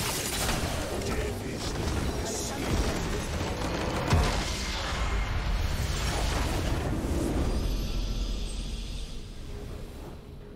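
Video game spell effects crackle and whoosh loudly.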